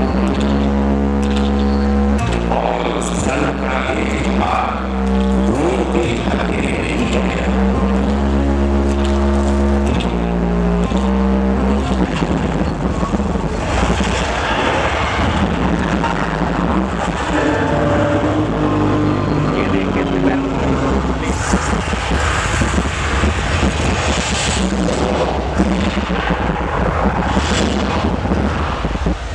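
Loud music plays through loudspeakers outdoors.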